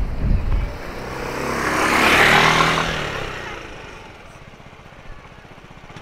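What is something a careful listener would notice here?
A motor scooter passes close by and its engine fades away.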